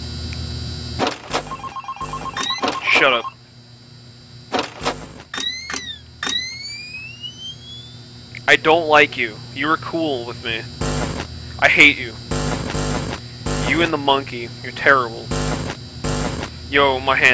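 Short bursts of electronic static crackle and hiss.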